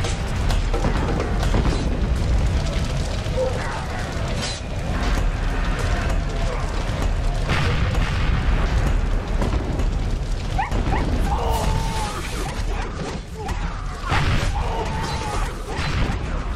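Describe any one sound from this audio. Fire crackles and roars steadily.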